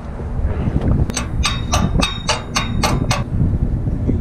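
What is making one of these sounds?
Metal hardware clanks and clicks against a steel tower bracket.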